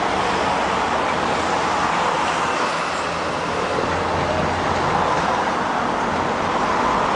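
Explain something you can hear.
Car engines hum as a line of cars drives slowly past.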